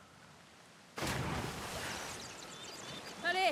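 Water splashes loudly as someone drops into a pool.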